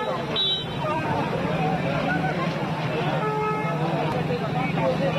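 A crowd of men talks at once, close by and outdoors.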